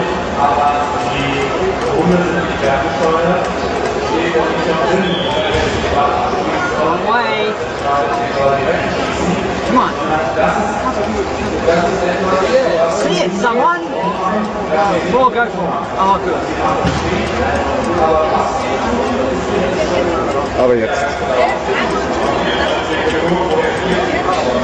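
A crowd of people chatter and call out nearby.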